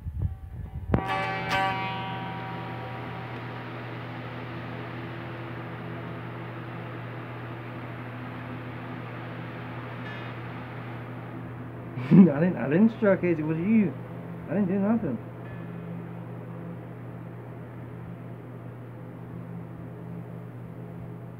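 Guitar strings are strummed and ring out slowly.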